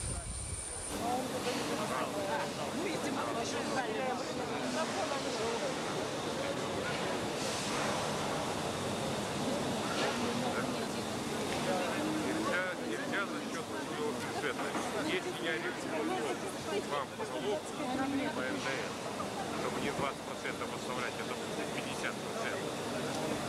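A crowd murmurs and talks close by.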